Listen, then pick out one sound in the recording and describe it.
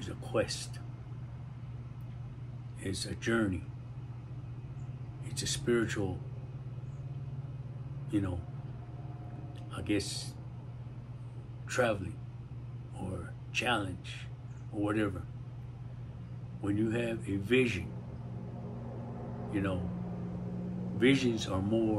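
An elderly man speaks slowly and calmly close to a microphone, with long pauses.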